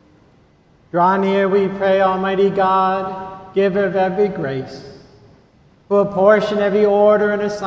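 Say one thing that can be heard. An elderly man chants in song through a microphone, echoing in a large hall.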